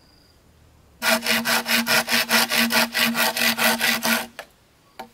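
A knife chops rapidly into bamboo.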